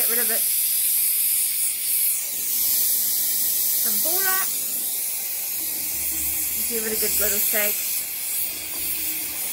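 A gas torch roars with a steady hiss.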